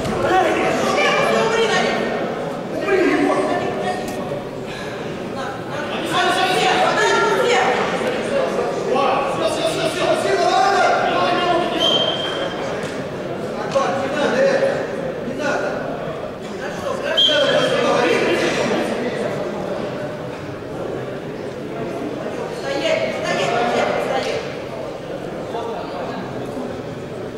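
Spectators shout and call out in an echoing hall.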